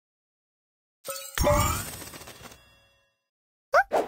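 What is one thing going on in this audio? Chiming game sound effects play as jewels match and burst.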